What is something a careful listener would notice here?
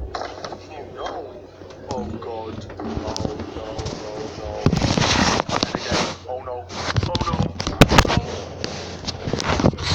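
A young man talks with excitement close to a microphone.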